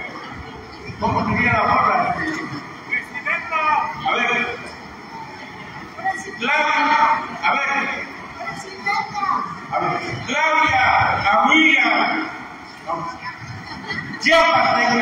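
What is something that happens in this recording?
A man close by sings loudly with animation.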